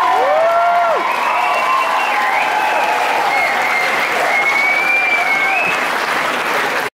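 A live band plays loudly in a large echoing hall.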